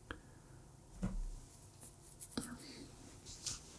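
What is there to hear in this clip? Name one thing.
A young man murmurs softly and briefly into a close microphone.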